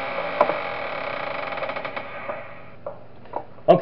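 An electric fan whirs steadily.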